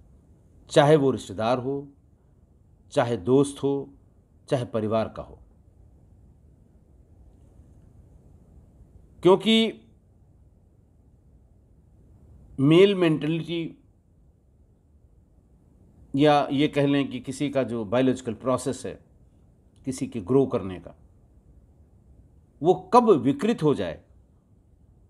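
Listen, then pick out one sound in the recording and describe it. A middle-aged man speaks calmly into a nearby microphone, in short phrases with long pauses.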